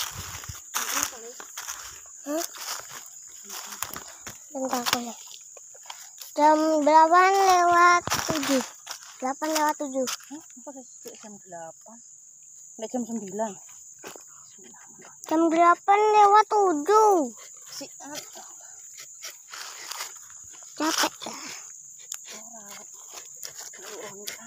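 Footsteps crunch and rustle through dry leaves.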